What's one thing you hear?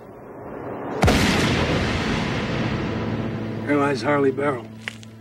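A gunshot rings out loudly and echoes away.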